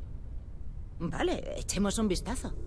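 A woman speaks calmly and warmly at close range.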